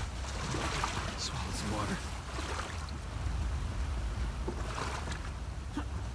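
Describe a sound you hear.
Water rushes and churns loudly.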